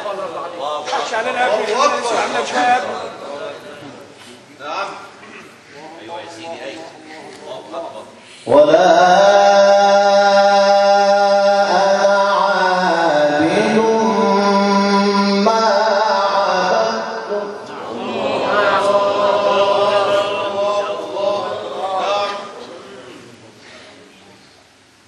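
A man chants in a long, sustained melodic voice through a microphone, heard close.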